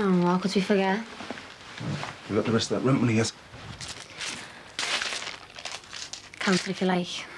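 A young woman speaks nearby in a raised, lively voice.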